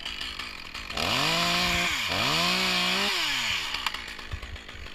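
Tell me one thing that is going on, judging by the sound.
A chainsaw revs loudly up close, rising and falling in pitch.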